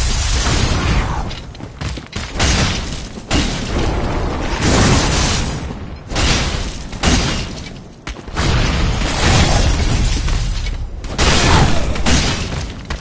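Crystal shards crash and shatter in loud, repeated bursts.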